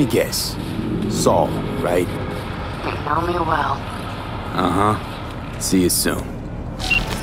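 A woman speaks calmly over a call.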